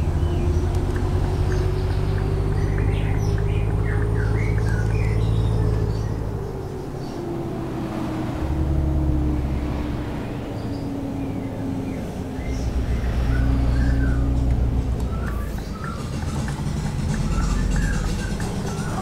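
A bus engine hums steadily, rising and falling as the bus drives along.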